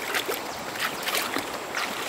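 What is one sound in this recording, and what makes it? A foot splashes in shallow water.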